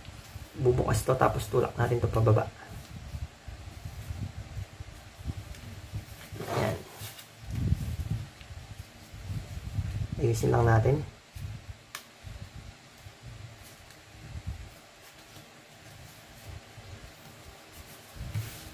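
Paper rustles and creases as it is folded by hand.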